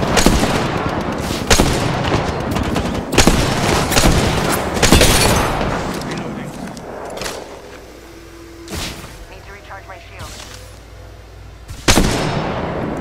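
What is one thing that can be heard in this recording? Rifle shots crack loudly, one after another.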